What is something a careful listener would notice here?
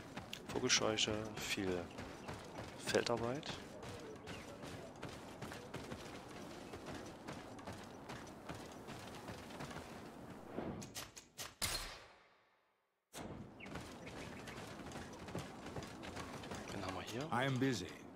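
Footsteps run over dirt and wooden boards.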